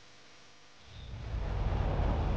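A car engine roars.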